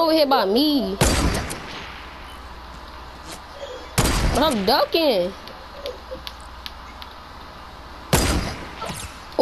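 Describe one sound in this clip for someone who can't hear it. A rifle fires loud single shots that ring out.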